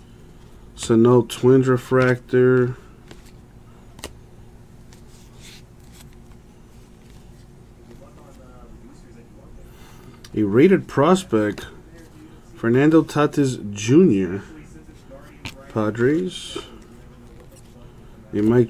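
Trading cards slide and rustle between hands close by.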